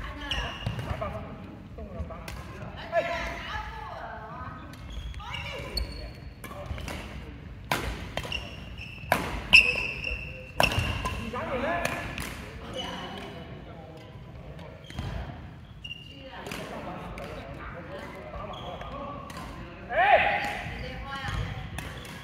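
Men talk and call out in a large echoing hall.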